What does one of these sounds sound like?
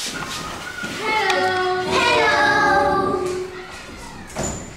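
A young boy speaks aloud in a small room.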